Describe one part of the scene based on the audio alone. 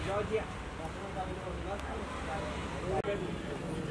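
A man speaks nearby in a friendly way.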